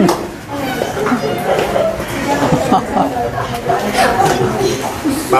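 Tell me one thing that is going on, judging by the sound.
An elderly woman talks cheerfully and close by.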